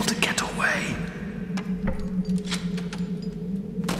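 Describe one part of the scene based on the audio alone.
A heavy iron gate creaks and rattles as it is lifted.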